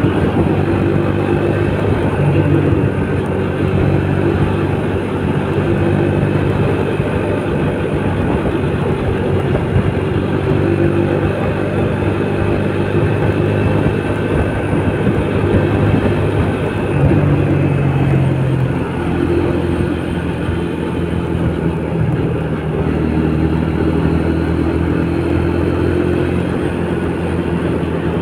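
A scooter engine hums steadily up close.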